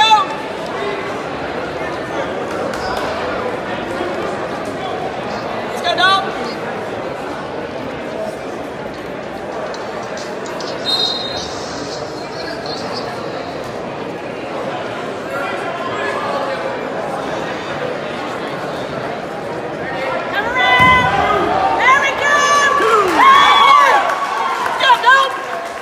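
A large crowd murmurs and chatters in an echoing gym.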